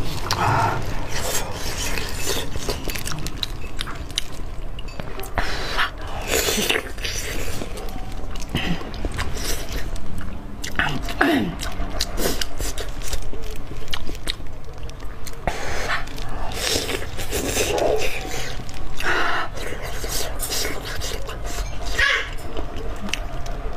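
Plastic gloves rustle and crinkle as food is handled.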